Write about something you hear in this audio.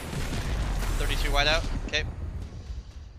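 A young man exclaims through a close microphone.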